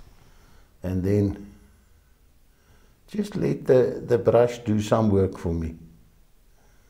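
An elderly man speaks calmly and close up.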